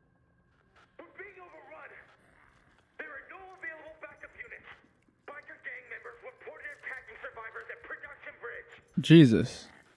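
A voice talks calmly over a crackly radio.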